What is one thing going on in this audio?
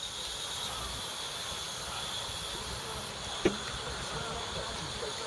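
A live-steam model locomotive hisses softly.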